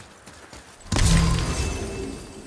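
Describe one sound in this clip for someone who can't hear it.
A heavy thud lands with a deep boom.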